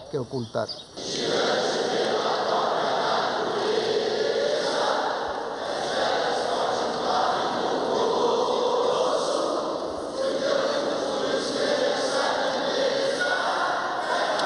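A large crowd murmurs and cheers.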